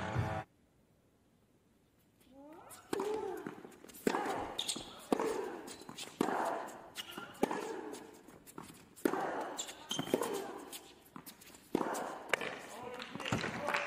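A tennis ball is struck hard with a racket, again and again.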